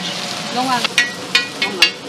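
A spatula scrapes across a metal griddle.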